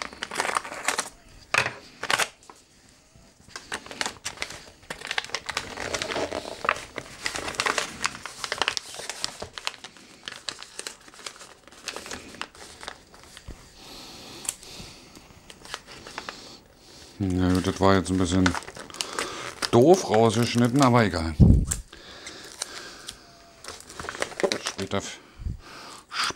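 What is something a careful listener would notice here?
Wrapping paper crinkles and rustles as it is folded.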